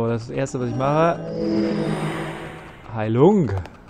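A shimmering magical chime swells and fades.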